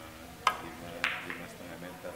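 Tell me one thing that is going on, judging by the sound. Billiard balls knock together on a table.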